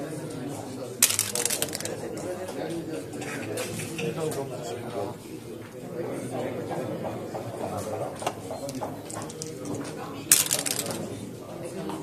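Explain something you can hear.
Dice rattle in a cup and clatter onto a board.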